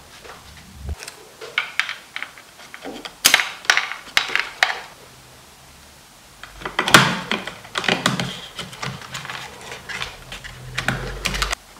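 Plastic and metal parts rattle and clack as they are handled.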